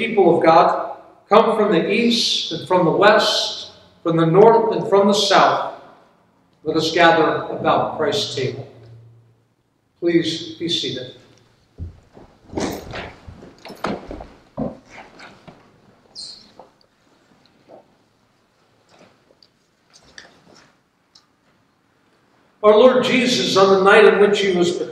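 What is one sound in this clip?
An elderly man reads aloud calmly in an echoing hall.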